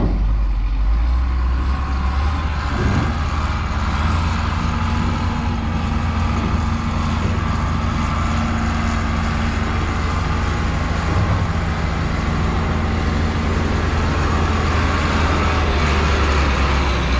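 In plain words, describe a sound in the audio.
A tractor engine rumbles steadily and grows louder as it approaches.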